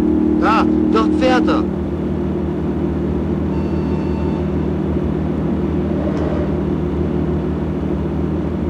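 A car engine hums steadily while driving at speed.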